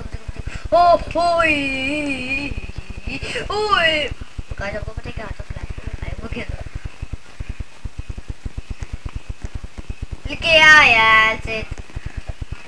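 A young boy talks excitedly into a nearby microphone.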